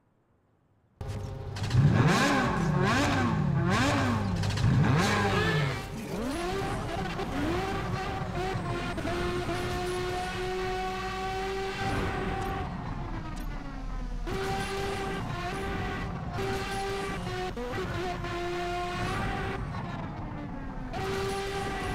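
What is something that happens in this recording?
A racing car engine revs loudly and whines as it speeds along.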